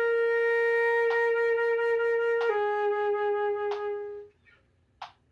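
A flute plays long, held notes close by.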